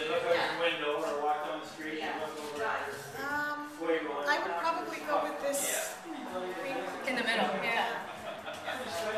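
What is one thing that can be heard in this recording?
A second woman speaks and answers close by.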